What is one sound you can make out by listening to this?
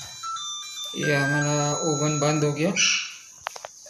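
A microwave oven beeps several times when it finishes.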